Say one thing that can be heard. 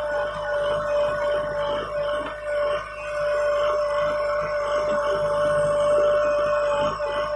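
A diesel engine hums steadily close by.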